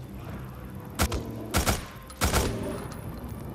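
Gunshots crack sharply several times.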